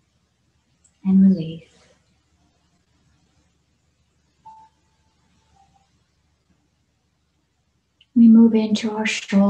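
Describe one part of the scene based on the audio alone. A woman speaks calmly and softly, close to a microphone, as if heard over an online call.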